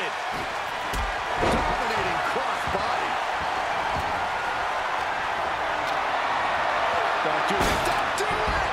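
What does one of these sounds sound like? Heavy thuds of bodies slamming onto a wrestling ring.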